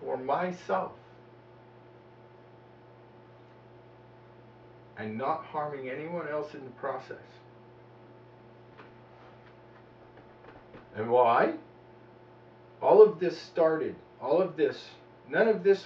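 A man talks with animation close by, in short bursts with pauses.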